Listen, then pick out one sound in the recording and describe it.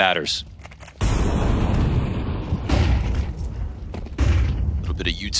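A firebomb bursts and flames roar.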